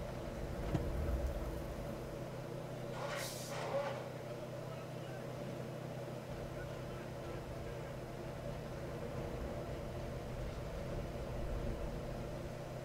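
Waves wash against a sailing ship's hull.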